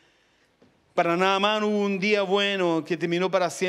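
A man sings loudly into a microphone, heard through loudspeakers.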